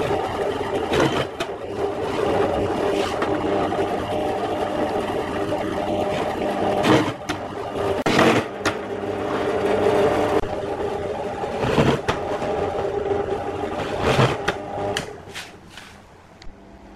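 A drill bit grinds into wood in short bursts.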